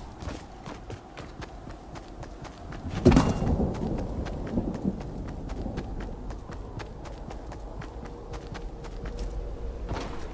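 Footsteps run on asphalt.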